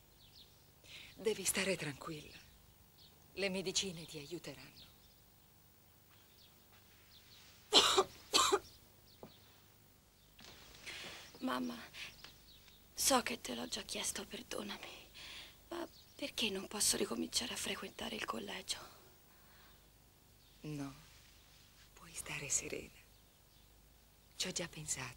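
A woman speaks softly and calmly nearby.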